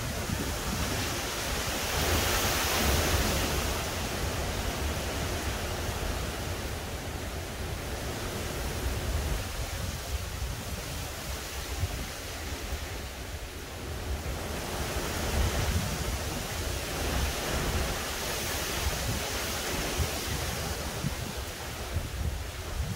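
Wind rustles tree leaves in gusts outdoors.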